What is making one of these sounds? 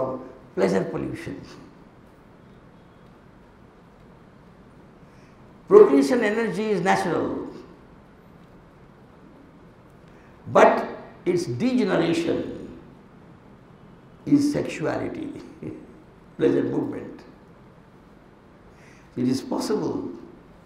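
A middle-aged man speaks into a microphone with animation, in short bursts with pauses.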